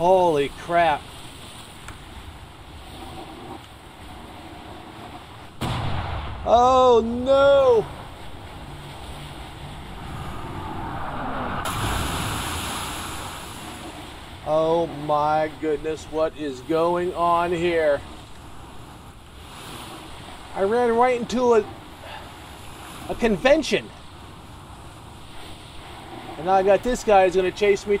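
Rough waves wash and splash around a sailing ship.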